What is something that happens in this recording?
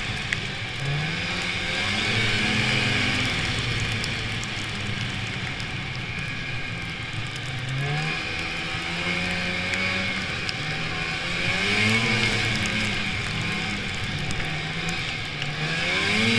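A snowmobile engine drones steadily, rising and falling in pitch as the throttle changes.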